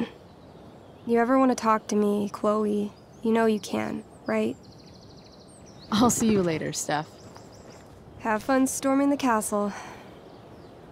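A young woman talks with animation.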